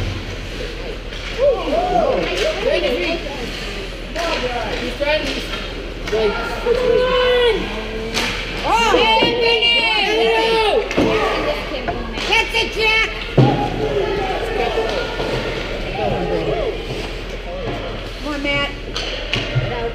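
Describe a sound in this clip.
Skates scrape and hiss on the ice.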